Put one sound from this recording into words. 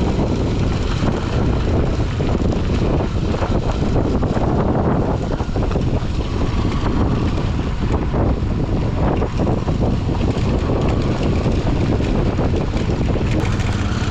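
Tyres crunch and rattle over a rough gravel road.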